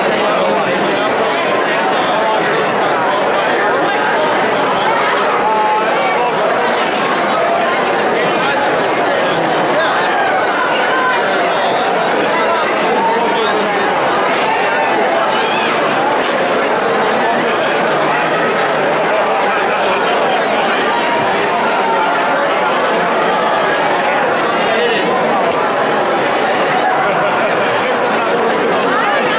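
A large crowd of men and women talks and cheers loudly in a big echoing hall.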